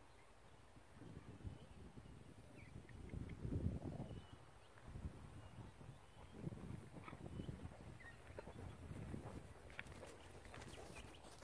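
A horse's hooves thud on grass as it trots closer.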